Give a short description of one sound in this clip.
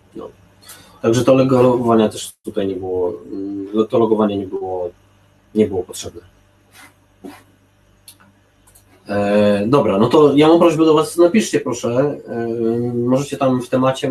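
A man speaks calmly into a microphone, heard over an online call.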